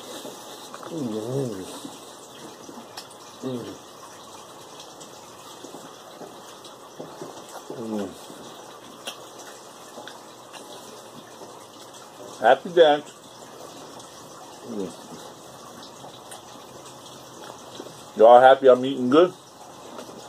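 A middle-aged man speaks in short, drawn-out bursts close by.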